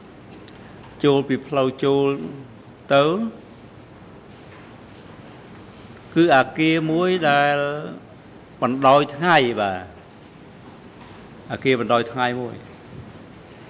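A middle-aged man speaks into a microphone in short bursts, with pauses.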